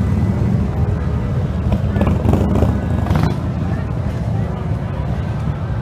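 A motorcycle engine idles with a deep, rumbling throb close by.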